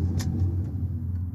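A push button clicks once.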